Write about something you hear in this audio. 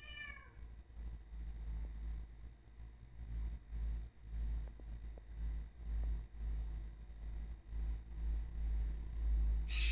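A dog sniffs at the floor.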